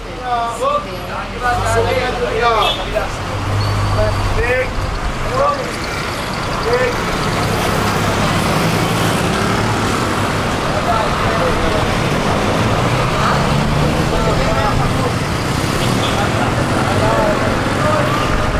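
Road noise hisses as a bus rolls along.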